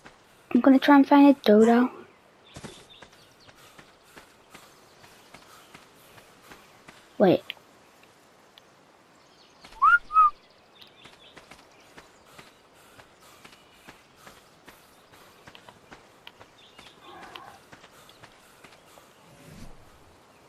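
Footsteps crunch softly on sand at a steady walking pace.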